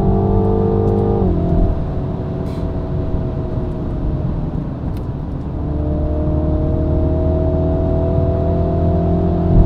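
A car engine hums, drops in pitch as the gear changes, then revs up again.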